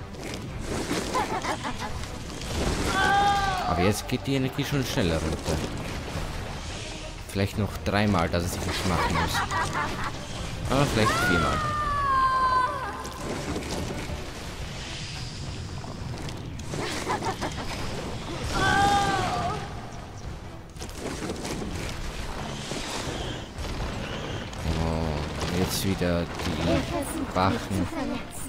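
Heavy deep rumbling and thuds come from a huge creature moving.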